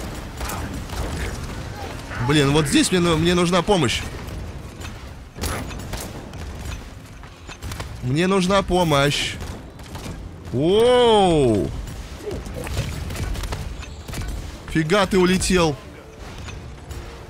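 Gunfire and blasts sound from a video game.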